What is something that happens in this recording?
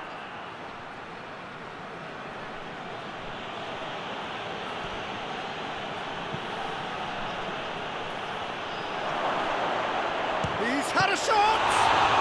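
A stadium crowd roars steadily, swelling louder near the end.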